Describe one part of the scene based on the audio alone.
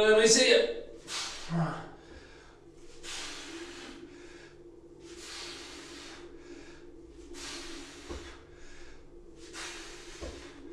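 A man breathes out hard in rhythmic bursts while exercising.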